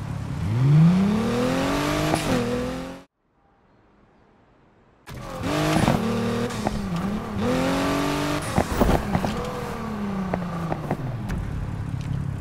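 A car engine revs and roars, rising and falling in pitch.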